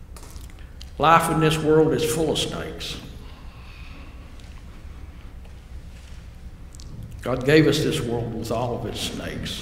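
An elderly man speaks calmly through a microphone in an echoing room.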